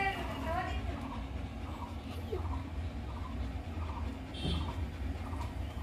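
A puppy whimpers and squeaks softly while nursing.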